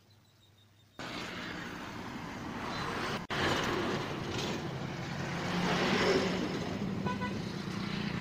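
Traffic rumbles along a road outdoors.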